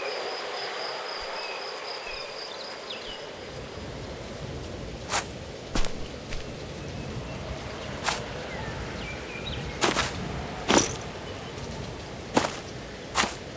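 Wind blows softly through trees.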